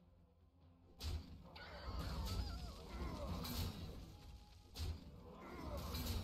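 Thuds and crashes sound as creatures strike each other.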